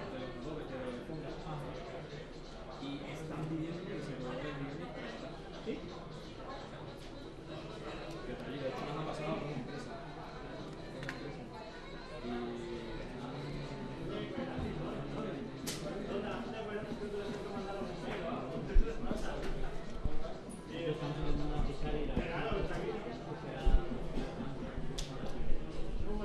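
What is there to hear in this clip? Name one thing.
A man speaks steadily into a microphone over loudspeakers in a large echoing hall.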